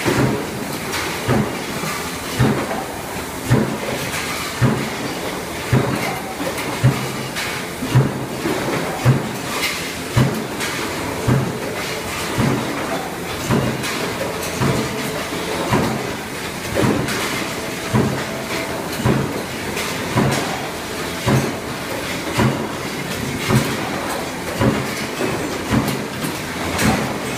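Power presses thump in a steady rhythm, echoing in a large hall.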